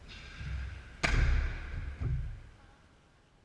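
A person lands with a heavy thud on a soft mat in an echoing hall.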